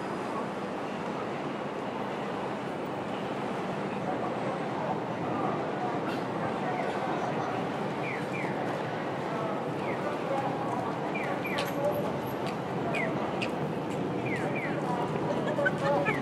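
Busy city street noise hums steadily outdoors.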